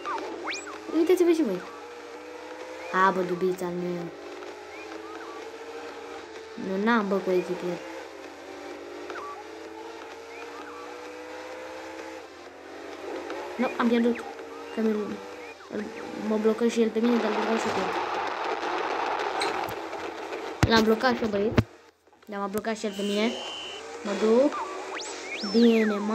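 Video game car engines hum and rev.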